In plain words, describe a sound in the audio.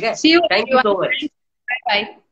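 A woman talks with animation over an online call.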